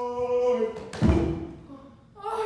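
A body drops onto a wooden floor with a thud.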